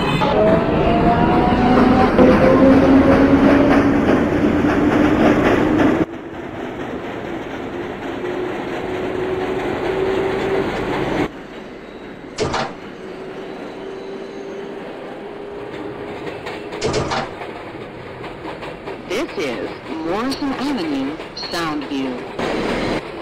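A subway train rumbles along the track while its electric motor whines higher and higher.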